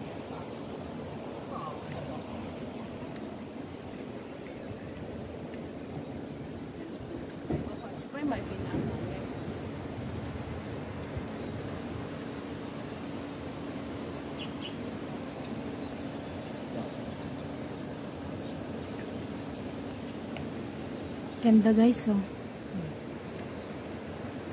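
Wind blows steadily across an open space outdoors.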